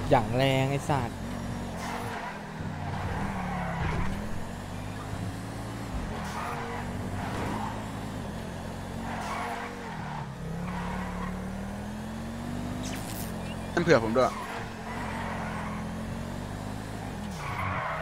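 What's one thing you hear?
A car engine revs and hums, rising and falling in pitch.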